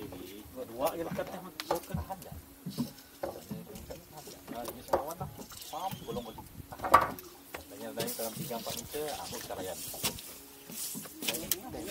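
Men talk casually nearby, outdoors in light wind.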